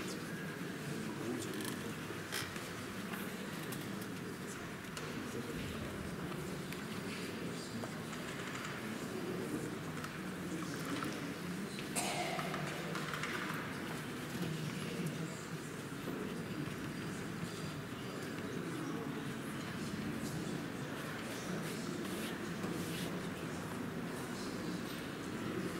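A brush dabs and scrubs softly on paper.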